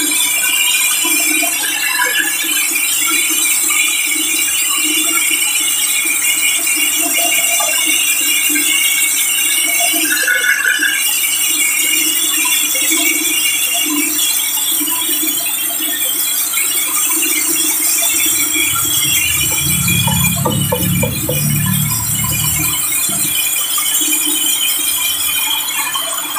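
A band saw hums as its blade cuts through a large hardwood log.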